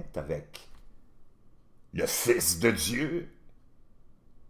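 A middle-aged man speaks with animation into a close microphone, in short bursts.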